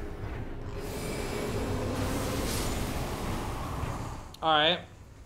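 A magical blast whooshes and crackles loudly.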